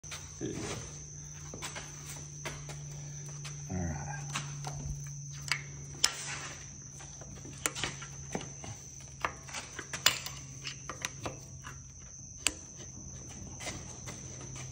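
Metal tools clink and tap against metal.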